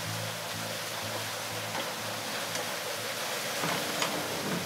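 Water gushes and splashes loudly.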